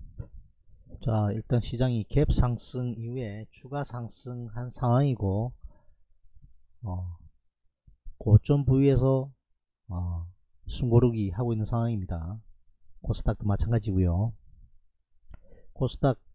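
A man speaks calmly and steadily into a microphone, close up.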